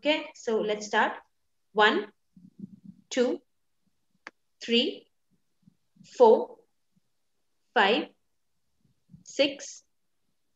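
An older woman speaks calmly into a microphone, in short phrases with pauses.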